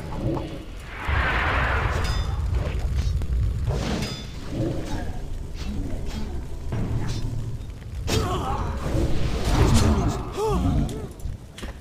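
Spells crackle and whoosh as a fight goes on.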